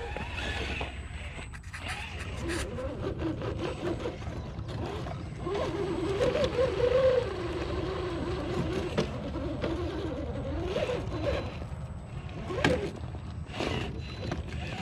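Plastic tyres scrape and crunch on rocky ground.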